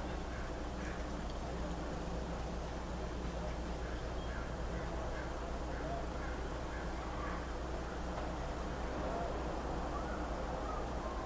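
A middle-aged man speaks calmly and softly close to the microphone.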